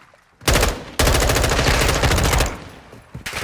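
An automatic rifle fires rapid, loud bursts.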